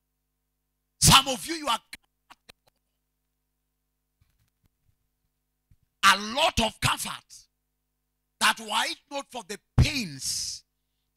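A man preaches forcefully into a microphone in short bursts, with pauses between them.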